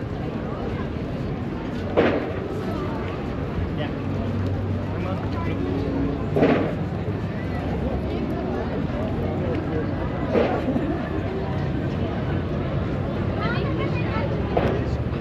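A crowd of people talks and murmurs nearby outdoors.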